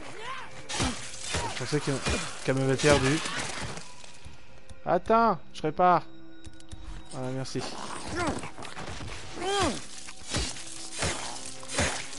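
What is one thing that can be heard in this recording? Heavy blows thud during a fight.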